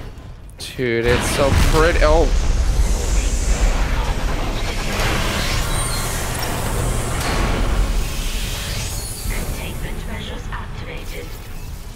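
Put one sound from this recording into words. Air rushes out with a loud roar as a hull breaks open.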